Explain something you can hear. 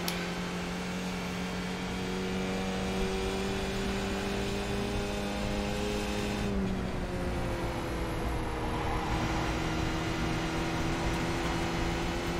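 A racing car engine whines steadily and shifts down in pitch.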